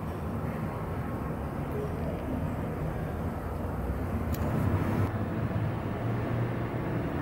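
A cat purrs softly up close.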